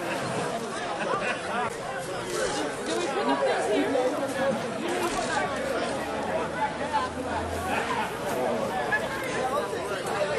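A crowd of people chatter outdoors.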